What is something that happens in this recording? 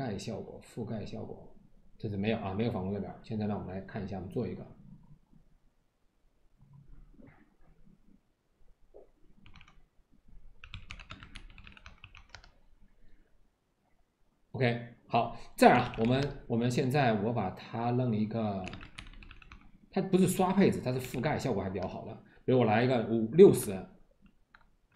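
A man talks calmly and close to a microphone, in bursts.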